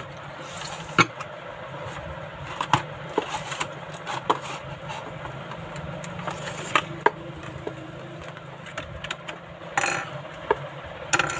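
Small plastic parts click and tap against each other.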